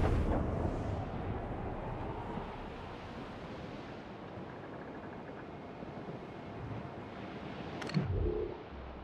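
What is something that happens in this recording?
Waves splash and rush against a sailing ship's hull.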